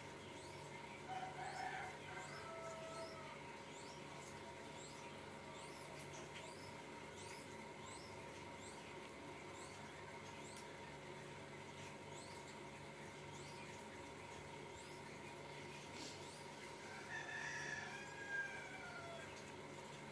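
A young woman speaks softly close to a microphone.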